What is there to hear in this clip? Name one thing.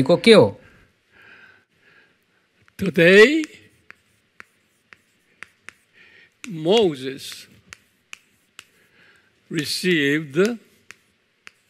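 An older man speaks calmly in short phrases.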